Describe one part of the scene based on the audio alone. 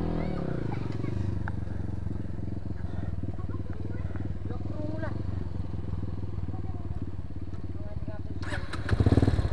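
A motorcycle engine idles low and steady.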